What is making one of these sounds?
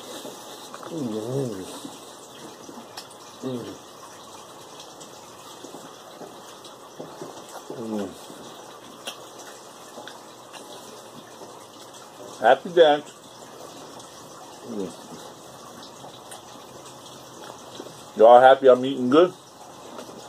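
A man chews food with soft crunching.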